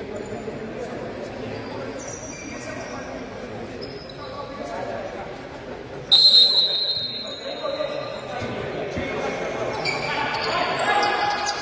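Young players call out to each other in a large echoing hall.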